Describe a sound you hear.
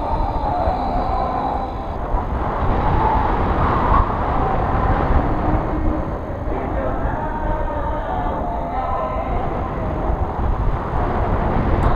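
Strong wind rushes and buffets loudly close by.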